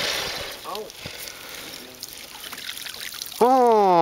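Water splashes as a net hits the surface.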